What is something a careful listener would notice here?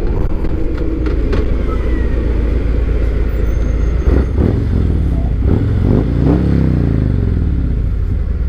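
A tanker truck rumbles by close alongside.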